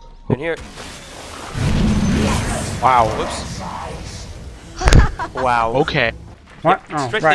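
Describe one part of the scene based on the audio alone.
Magic spells burst and crackle in a fight.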